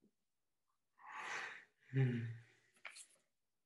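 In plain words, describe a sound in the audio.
A man yawns loudly.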